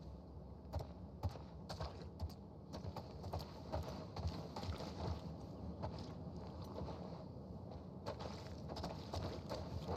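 Footsteps scuff across a hard floor.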